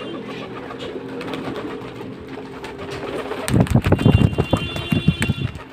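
Pigeons coo softly.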